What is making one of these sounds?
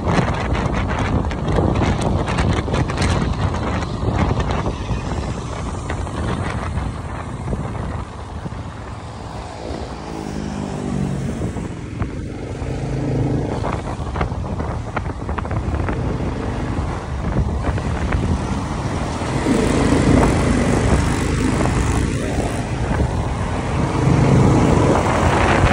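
A motorcycle engine hums while riding.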